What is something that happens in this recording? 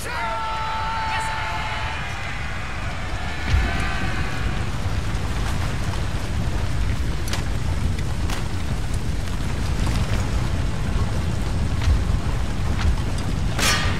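Many soldiers tramp across grassy ground.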